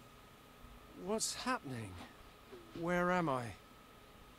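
A man asks in confusion.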